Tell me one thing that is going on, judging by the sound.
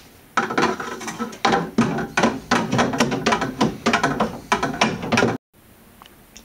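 Wooden paddles stir and slosh water inside plastic jugs.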